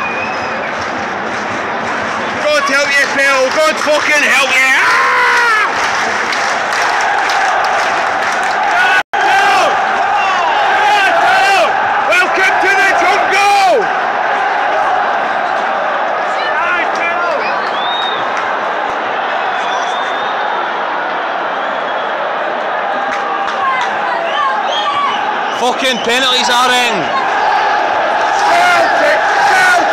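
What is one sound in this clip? A huge stadium crowd roars and sings loudly all around.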